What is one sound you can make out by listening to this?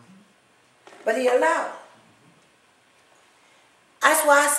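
A woman sings out loudly in short phrases in an echoing room.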